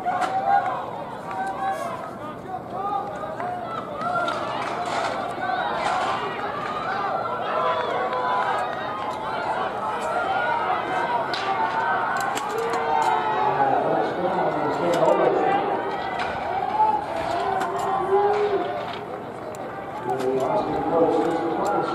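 A crowd of people chatters all around outdoors, with many voices overlapping.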